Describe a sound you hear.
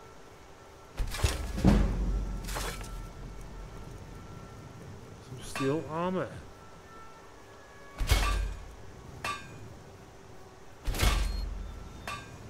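A hammer clangs on metal at an anvil a few times.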